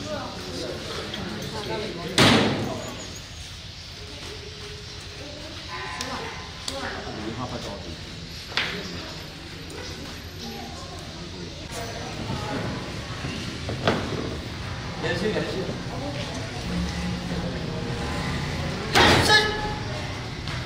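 A crowd of boys and men murmur and talk nearby.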